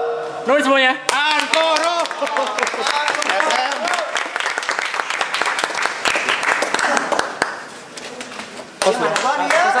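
People in a crowd clap their hands.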